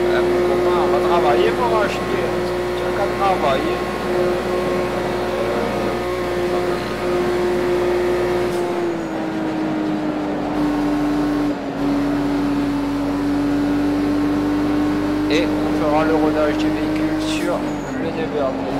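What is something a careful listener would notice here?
Tyres squeal on tarmac in short bursts.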